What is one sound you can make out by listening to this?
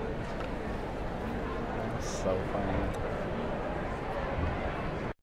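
Orchestral music plays in a large hall.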